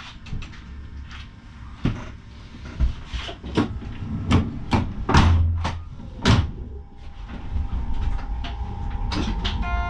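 A train rumbles along the rails.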